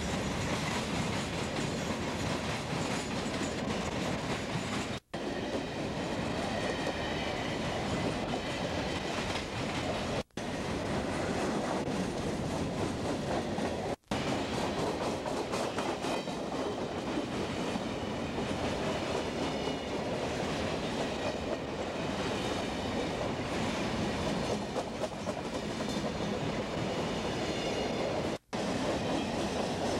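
Wheels squeal and screech against the rails.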